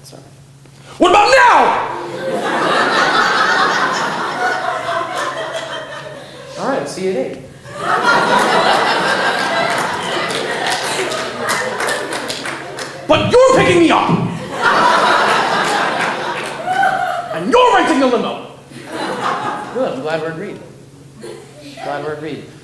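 A young man talks animatedly and shouts through a microphone.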